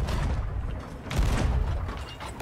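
A cannon fires with a loud blast close by.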